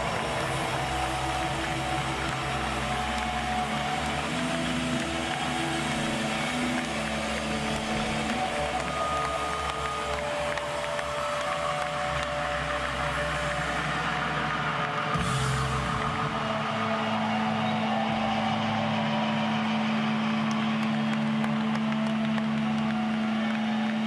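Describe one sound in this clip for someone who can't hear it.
An electric guitar rings and hums through loudspeakers.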